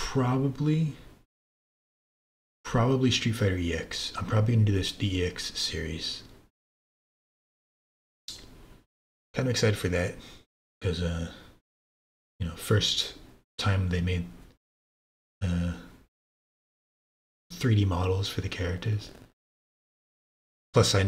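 A man talks with animation into a microphone, in short bursts with pauses.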